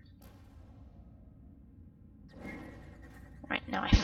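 A portal gun fires with a short zap.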